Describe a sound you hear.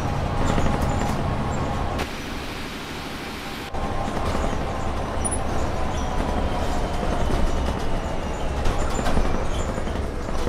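Tyres rumble over a cobbled road.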